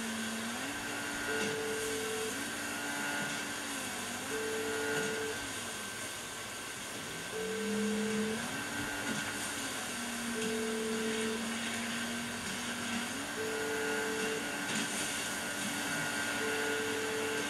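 A motorboat engine drones and shifts in pitch as the boat speeds along.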